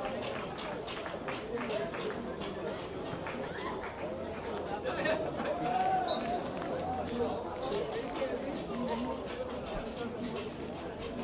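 Men shout to each other across an open outdoor field.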